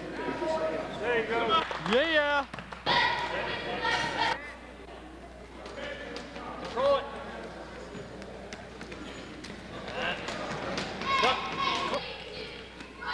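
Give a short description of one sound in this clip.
Men in a crowd shout loudly and urgently, echoing through a large hall.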